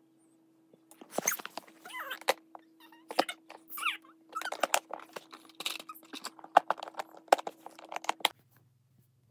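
A plastic box rattles and clatters as it is handled.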